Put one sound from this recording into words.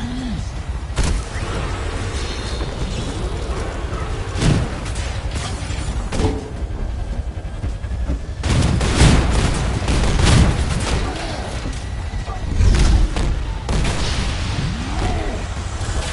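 Explosions and blasts boom in a video game fight.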